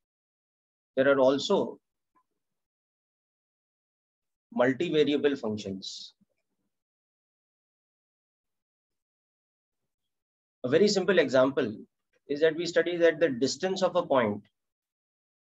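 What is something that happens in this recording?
A man speaks calmly into a microphone, heard as on an online call.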